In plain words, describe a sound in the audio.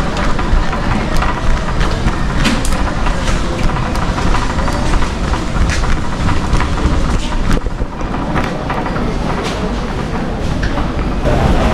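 A shopping cart rattles as its wheels roll over a smooth floor.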